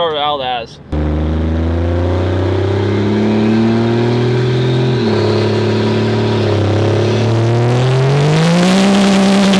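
A truck engine revs and rises in pitch as it shifts through gears.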